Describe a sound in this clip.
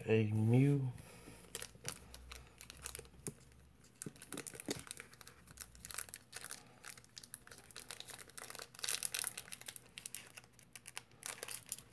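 A foil wrapper crinkles and rustles in someone's hands.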